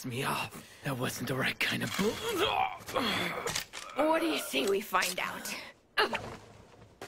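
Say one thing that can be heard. A man shouts and groans with strain, close by.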